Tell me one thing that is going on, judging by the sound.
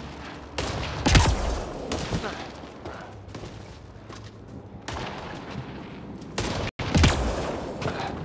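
A gun fires loud single shots.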